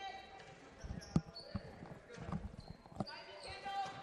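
A basketball bounces on a wooden court.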